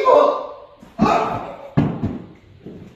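A man falls heavily to the floor with a thud.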